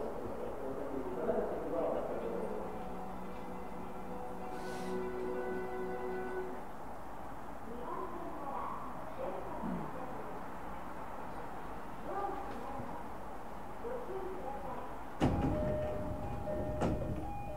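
An electric train idles with a steady low hum.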